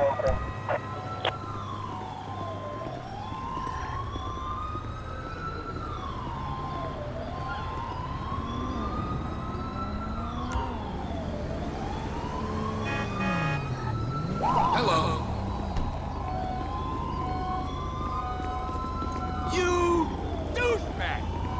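A police siren wails steadily, rising and falling.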